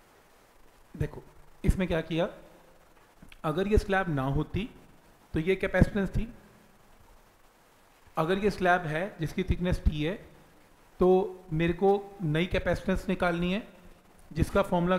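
A man lectures calmly into a clip-on microphone.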